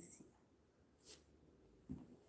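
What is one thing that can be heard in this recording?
A hand rubs across a plastic sheet with a soft rustle.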